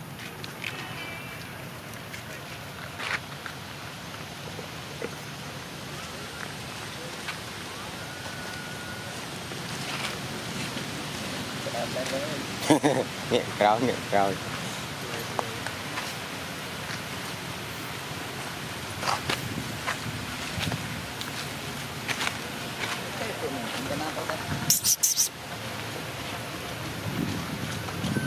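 A monkey walks over dry leaves, rustling them softly.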